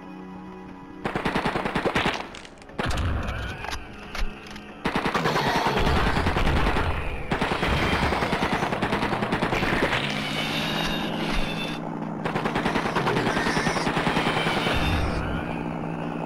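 A rapid-fire gun fires in quick bursts.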